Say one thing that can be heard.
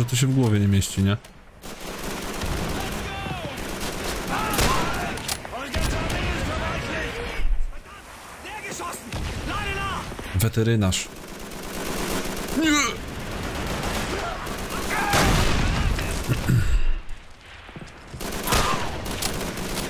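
Gunfire cracks and echoes in bursts.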